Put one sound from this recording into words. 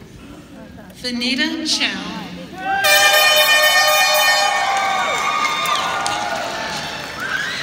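A crowd cheers and whoops loudly in an echoing hall.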